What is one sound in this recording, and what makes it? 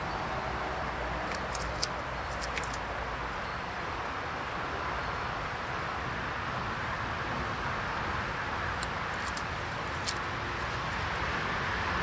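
Bees buzz in a low, steady hum close by.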